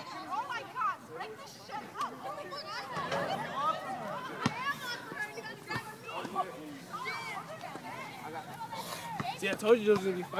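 A crowd of young people shouts and yells excitedly outdoors at a distance.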